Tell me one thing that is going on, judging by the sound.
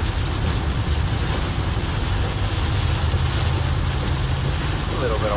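Heavy rain drums on a vehicle's roof and windshield.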